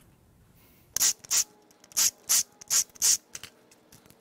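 A cordless drill drives bolts in short, sharp bursts.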